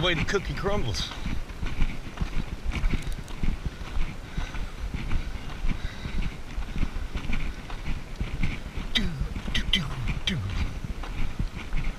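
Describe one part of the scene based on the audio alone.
Footsteps crunch steadily on a gravel path.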